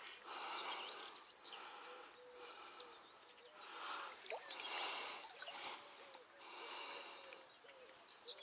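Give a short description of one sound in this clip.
A fishing reel whirs in bursts as its handle is cranked.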